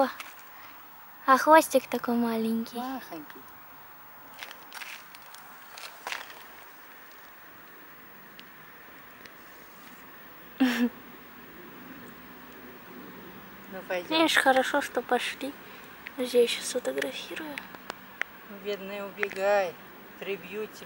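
A small rodent rustles softly among dry leaves.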